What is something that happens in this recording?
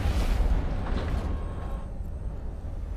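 A whooshing rush fades away.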